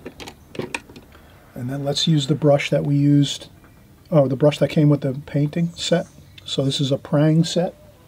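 A paintbrush is set down on a table with a light tap.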